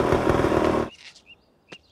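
A scooter engine runs close by.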